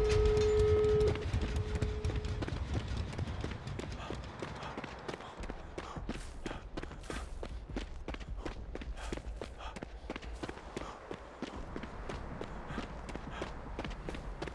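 Footsteps run quickly over snowy ground.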